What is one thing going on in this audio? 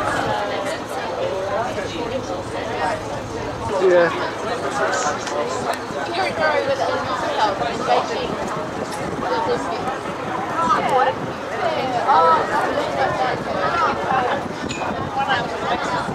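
Water splashes and laps against a moving boat.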